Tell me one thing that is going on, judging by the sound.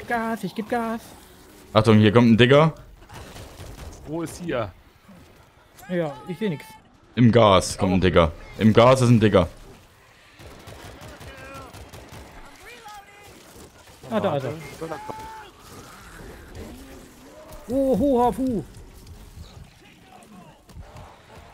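A man talks with animation into a close microphone, in bursts.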